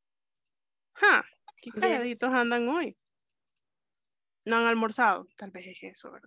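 A young woman sings over an online call.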